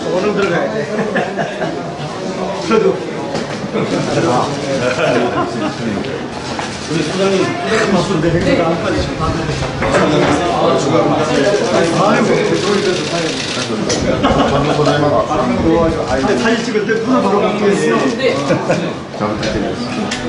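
Several men and women talk over one another nearby, in a room full of chatter.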